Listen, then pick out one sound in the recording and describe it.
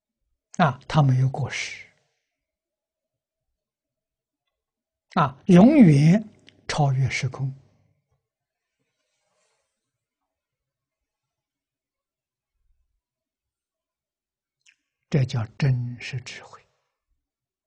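An elderly man speaks calmly in short phrases, close through a lapel microphone, with long pauses.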